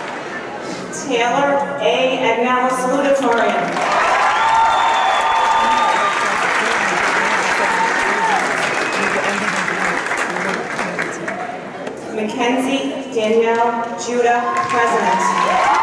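A man reads out names through a loudspeaker.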